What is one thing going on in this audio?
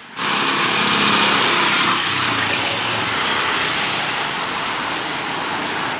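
A vehicle drives past on a street.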